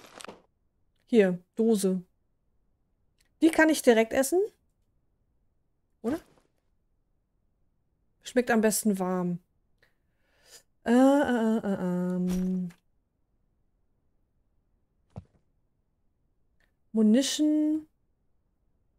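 A young woman speaks into a microphone in short, calm bursts.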